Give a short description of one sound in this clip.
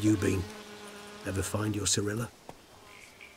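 A man speaks calmly in a low, deep voice close by.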